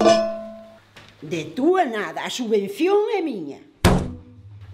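An elderly woman speaks close by.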